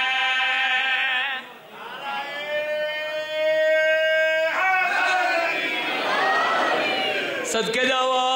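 A young man sings a chant with long held notes into a microphone.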